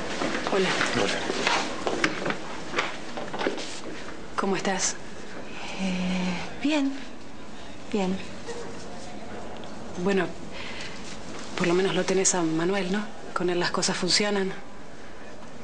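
A second young woman answers calmly, close by.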